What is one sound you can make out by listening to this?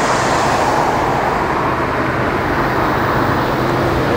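A car drives across a bridge overhead.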